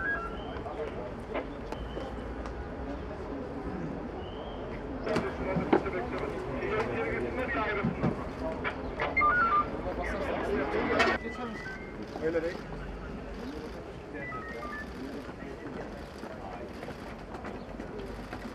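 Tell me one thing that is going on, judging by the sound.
A crowd murmurs and talks outdoors.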